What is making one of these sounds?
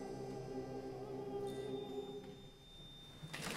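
A men's choir sings in deep, full voices in a reverberant hall.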